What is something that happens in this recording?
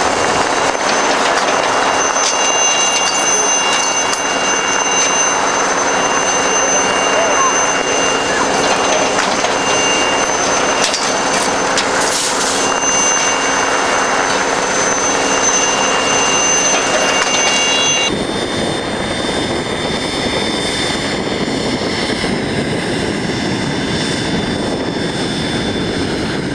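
An Alouette III helicopter idles on the ground with its turbine whining and its rotor turning.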